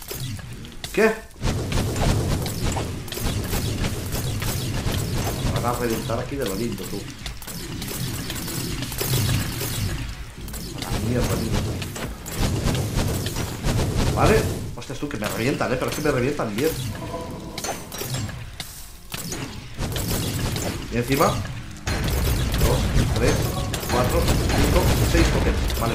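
Sword blows land on a creature with rapid, dull thuds.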